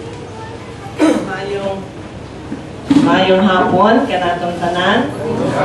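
A woman speaks into a microphone over a loudspeaker, with animation.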